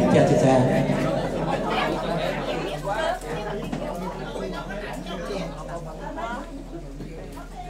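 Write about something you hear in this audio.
A man talks through a microphone with animation, heard over loudspeakers.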